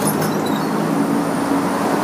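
A truck rumbles past.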